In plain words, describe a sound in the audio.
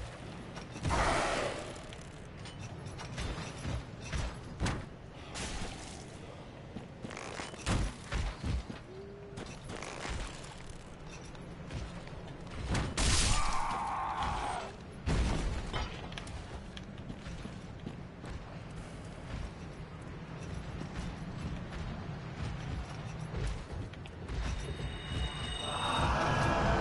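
Metal weapons clash and strike in sharp, heavy blows.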